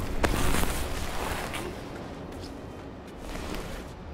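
A body drops with a thud onto wooden boards.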